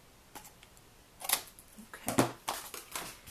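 Scissors snip through cardstock.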